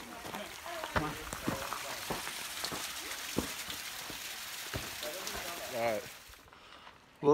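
A waterfall splashes steadily onto rocks.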